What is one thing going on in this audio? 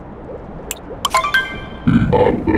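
A short bright chime sounds as a menu choice is made.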